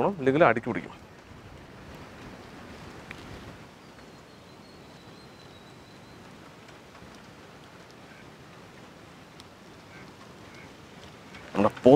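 A wood fire crackles softly outdoors.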